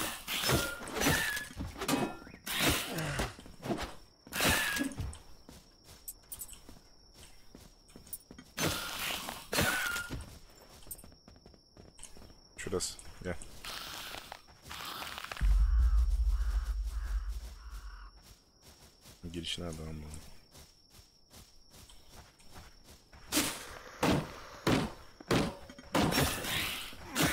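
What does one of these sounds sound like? Sharp wooden knocks come in quick bursts as wood is chopped and gathered.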